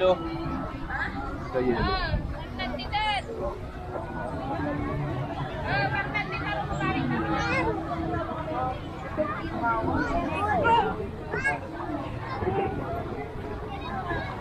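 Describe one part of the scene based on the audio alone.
People chatter and call out nearby outdoors.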